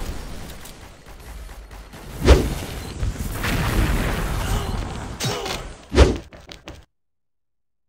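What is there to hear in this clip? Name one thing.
A heavy gun fires loudly in bursts.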